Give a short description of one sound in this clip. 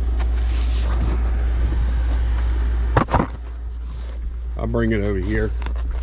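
A cardboard box bumps and scrapes.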